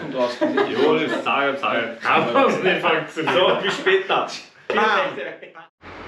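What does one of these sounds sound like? Several men laugh together.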